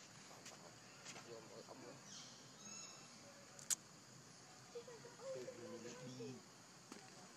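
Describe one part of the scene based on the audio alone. A monkey makes soft squeaky calls.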